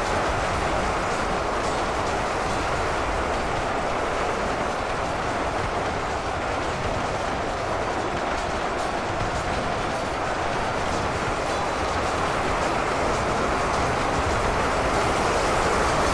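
A huge battle roars on, with a dense din of clashing weapons and cries from a vast crowd of fighters.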